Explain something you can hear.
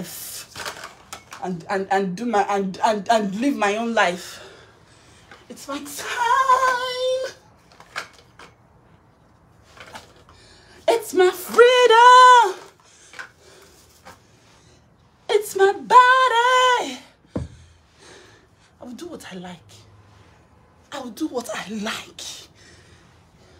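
A young woman talks and sings animatedly close by.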